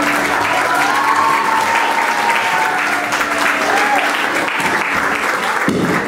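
Performers clap their hands.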